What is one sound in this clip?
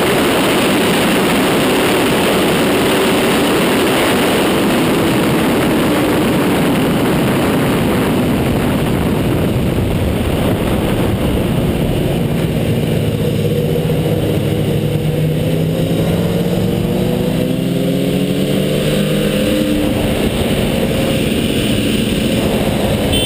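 Wind roars loudly past a fast-moving motorcycle.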